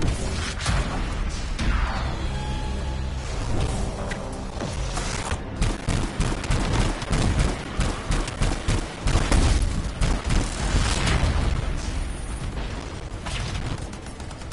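Electric blasts crackle and zap.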